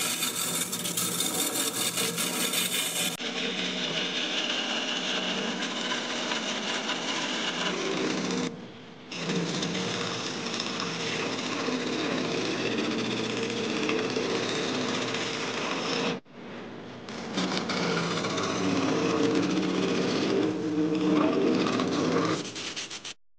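A chisel scrapes and cuts into spinning wood.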